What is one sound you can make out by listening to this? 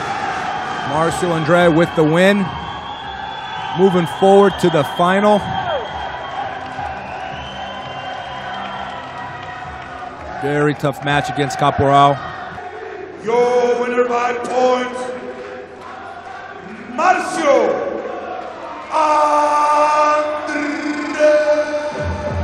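A man announces loudly through a microphone and loudspeakers, echoing in a large hall.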